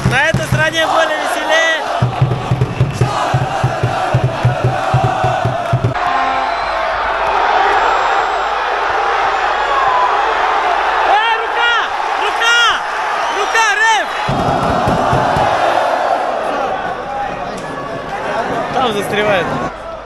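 A man talks excitedly close by.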